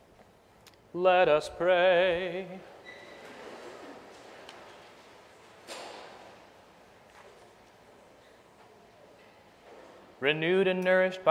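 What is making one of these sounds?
A man chants through a microphone in a large echoing room.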